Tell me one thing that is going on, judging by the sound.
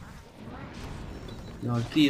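A magic beam fires with a loud humming roar.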